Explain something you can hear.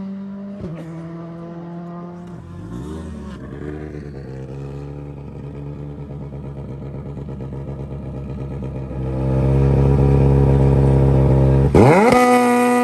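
A rally car engine idles with a rough, uneven rumble.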